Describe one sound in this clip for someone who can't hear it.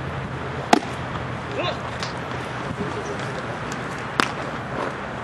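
A baseball smacks sharply into a leather glove.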